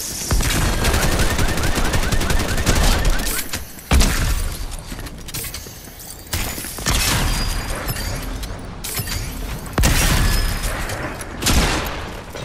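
Rapid gunshots crack in a video game.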